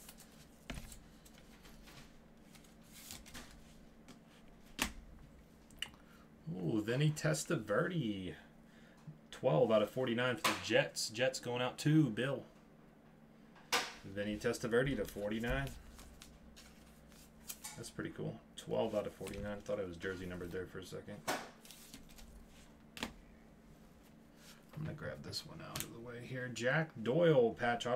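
Plastic card sleeves rustle and click under gloved hands.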